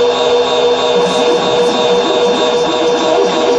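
A rough, gritty texture swells in the electronic music near the end.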